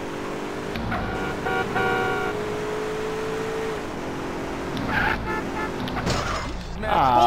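A car engine hums steadily as a car drives along.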